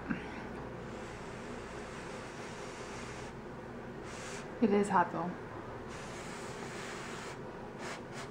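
A young woman blows on a forkful of hot food.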